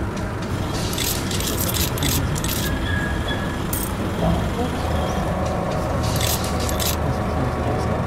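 Coins clink into a metal tray.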